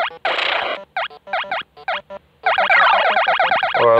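A short electronic jingle sounds as points are scored.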